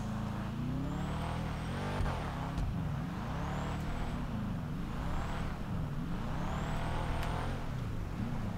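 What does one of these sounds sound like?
Tyres squeal on the ground.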